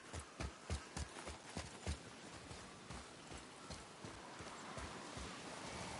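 Heavy footsteps thud on the ground as a man runs.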